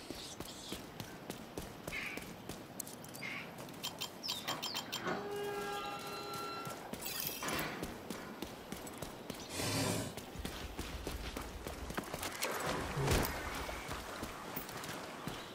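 Footsteps tread steadily over rough ground.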